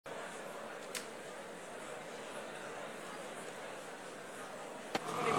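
A large audience murmurs and chatters in a big echoing hall.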